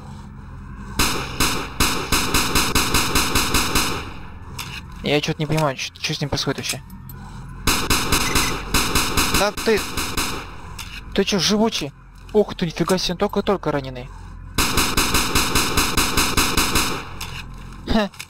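An automatic weapon fires long, rapid bursts.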